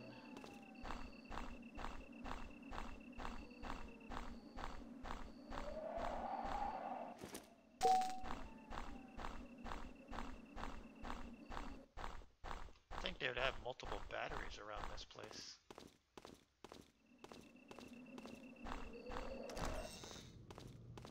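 Footsteps of a game character tap quickly.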